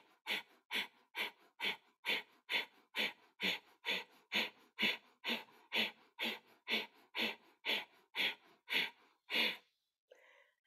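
A woman breathes out sharply through her nose in a quick, steady rhythm.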